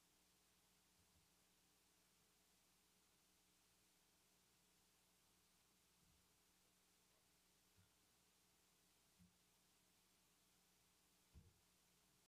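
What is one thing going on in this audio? Papers bump and rustle softly near a microphone.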